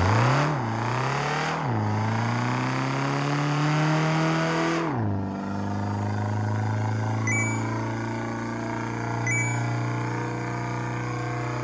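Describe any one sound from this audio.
A toy truck engine revs, rising and falling in pitch as it shifts gears.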